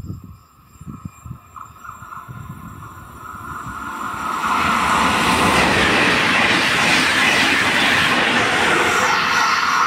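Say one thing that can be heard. An electric passenger train approaches and rushes past close by at speed.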